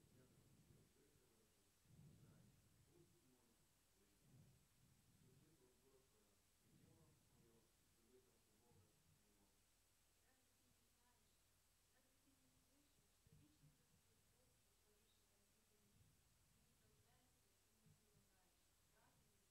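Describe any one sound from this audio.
An elderly man reads aloud calmly into a microphone, with pauses.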